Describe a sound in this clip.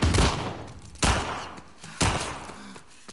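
Heavy blows thud in a close scuffle.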